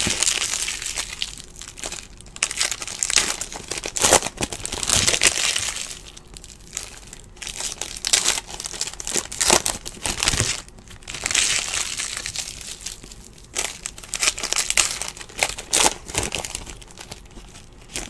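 Foil card wrappers crinkle and rustle close by.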